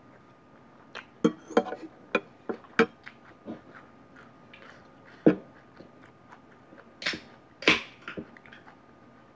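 A fork and spoon clink against a plate.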